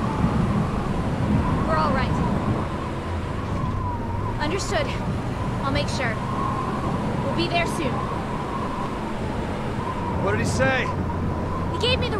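A young woman speaks calmly into a phone.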